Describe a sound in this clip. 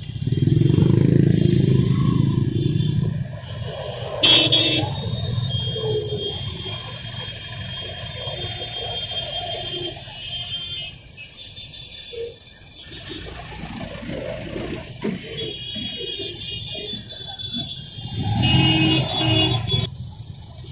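Motorbike and bus engines rumble past on a busy street.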